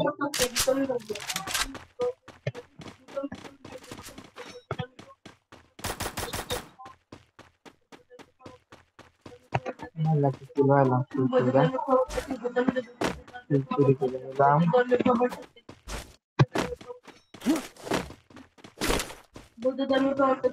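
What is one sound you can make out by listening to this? Footsteps run quickly over grass and ground.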